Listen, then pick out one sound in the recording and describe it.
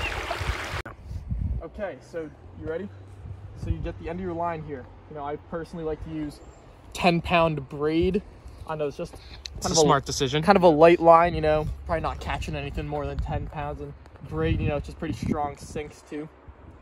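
A young man talks casually and laughs close by.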